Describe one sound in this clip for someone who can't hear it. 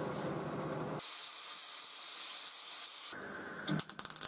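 An angle grinder whirs.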